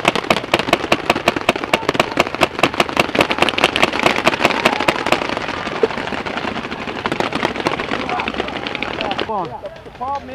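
Paintball markers fire in rapid bursts close by.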